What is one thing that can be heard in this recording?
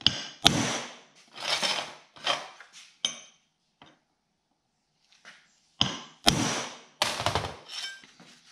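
A hammer strikes metal with sharp clanks.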